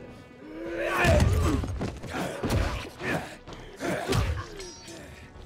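Heavy blows thud and strike.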